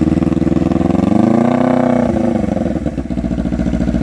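A motorcycle engine revs up briefly and settles back down.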